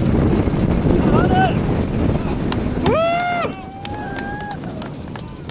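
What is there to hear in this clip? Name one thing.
Young men call out and cheer outdoors.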